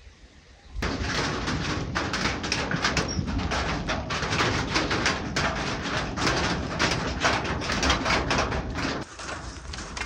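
Water splashes in a metal basin.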